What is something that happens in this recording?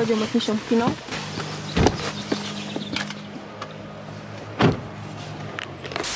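A car door thuds.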